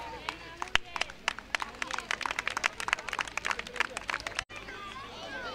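Water splashes as children swim.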